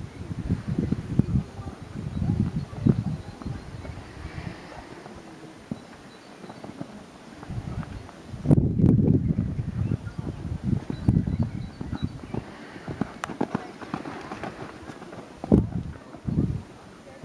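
A horse's hooves thud on soft sand as it canters.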